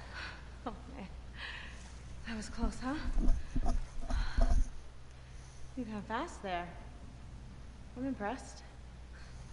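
A young woman talks casually to another person nearby.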